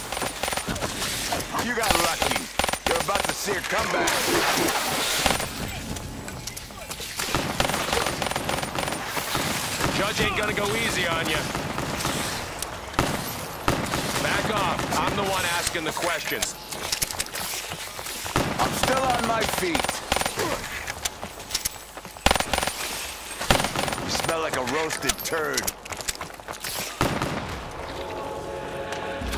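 Gunshots crack and rattle in quick bursts.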